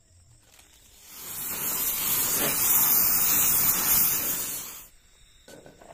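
A gas torch roars loudly.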